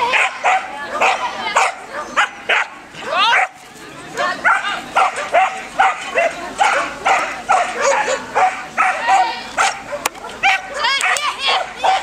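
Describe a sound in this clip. A woman calls out commands to a dog.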